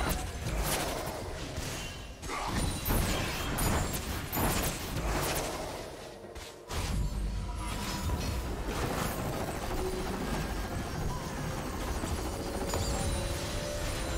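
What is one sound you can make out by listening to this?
Magic blasts and sword strikes crackle in a busy fight in a video game.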